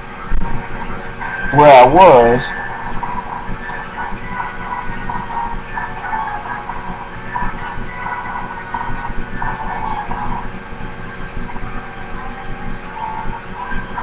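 Retro video game music plays steadily.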